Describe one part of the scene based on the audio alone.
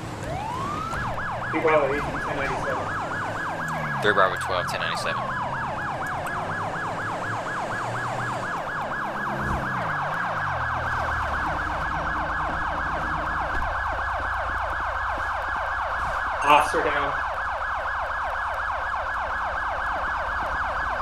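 A police siren wails rapidly and steadily.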